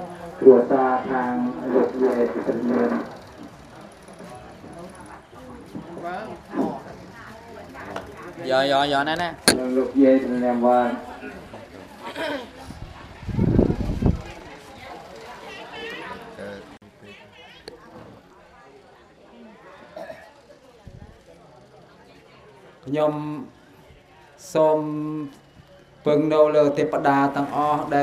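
An elderly man chants in a slow, sing-song voice through a microphone and loudspeakers.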